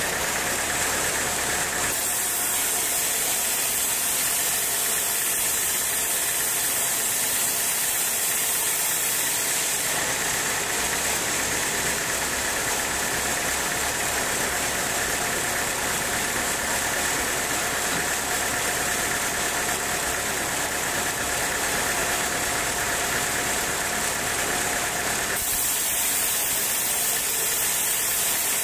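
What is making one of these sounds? A band saw whines loudly as it cuts through wood.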